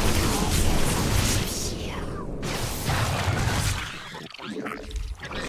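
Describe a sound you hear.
Video game battle effects crackle and blast loudly.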